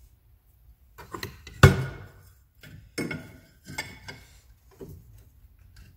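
Metal knocks and clatters against a metal table.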